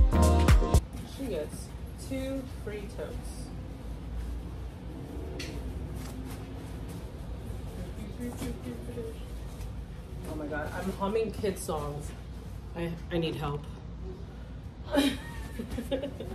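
Cloth bags rustle softly.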